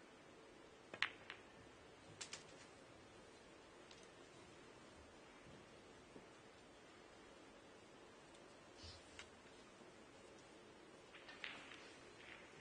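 Snooker balls knock together with crisp clacks.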